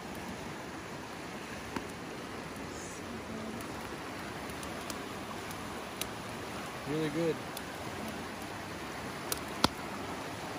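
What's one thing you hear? A fast river rushes steadily nearby.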